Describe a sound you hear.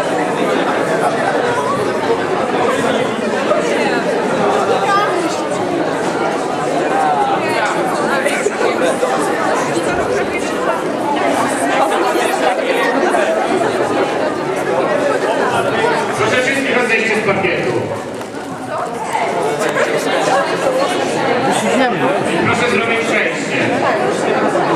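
A crowd of young people chatters loudly in an echoing hall.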